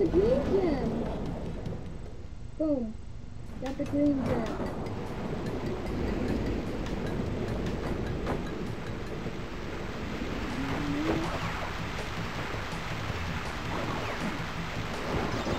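Bouncy game music plays steadily.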